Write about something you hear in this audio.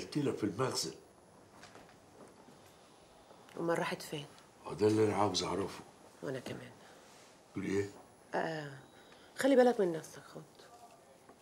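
An older man speaks firmly and close by.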